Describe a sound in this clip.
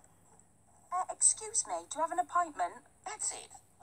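A man speaks in a strained, cartoonish voice.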